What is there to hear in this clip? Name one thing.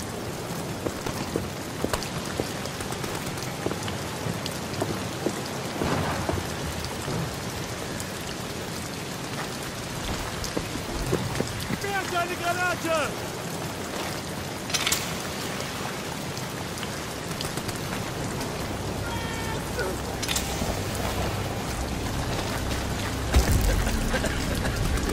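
Footsteps crunch slowly on dirt.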